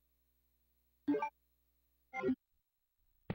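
A short electronic chime sounds twice.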